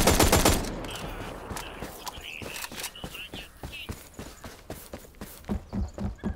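Footsteps run on grass.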